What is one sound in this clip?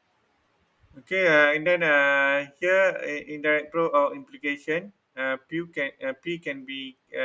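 A man speaks steadily, heard through an online call.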